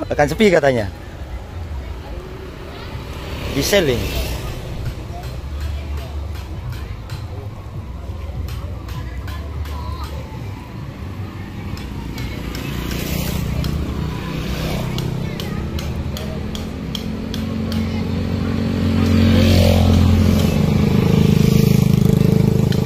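Motorbikes pass close by with buzzing engines.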